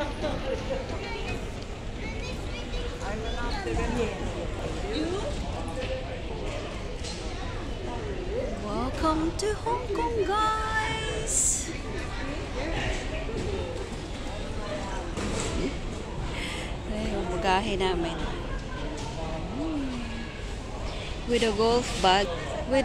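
Many men and women talk in a murmur across a large echoing hall.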